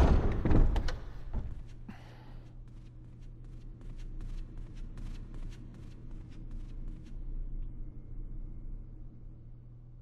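Footsteps knock on a wooden floor in an echoing hall.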